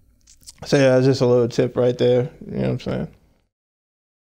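A man speaks calmly and warmly close to a microphone.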